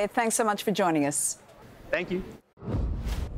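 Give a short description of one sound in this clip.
A woman speaks brightly into a microphone.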